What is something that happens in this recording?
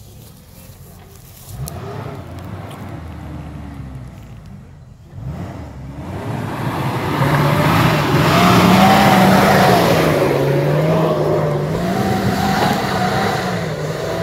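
An off-road car engine revs and labours as it climbs a steep dirt track close by.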